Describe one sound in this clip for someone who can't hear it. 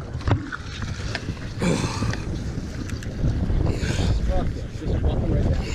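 A hooked fish splashes at the water's surface beside a boat.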